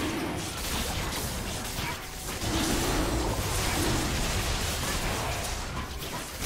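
Magical blasts and clashing sound effects from a video game battle crackle and boom.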